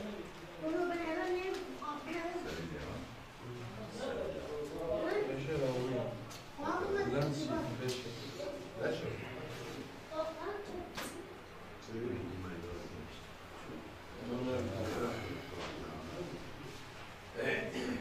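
Several men talk calmly nearby.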